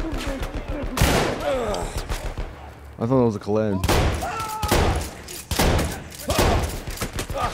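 Gunshots fire loudly, one at a time.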